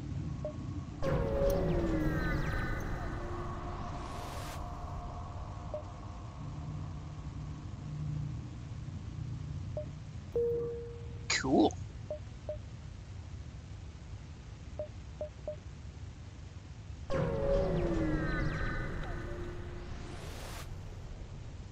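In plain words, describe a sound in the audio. A spaceship jumps in with a loud rushing whoosh that slowly fades.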